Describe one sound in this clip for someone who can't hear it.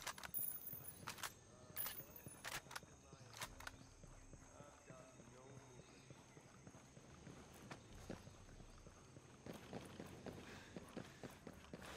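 Boots crunch on dirt and rock as a soldier walks.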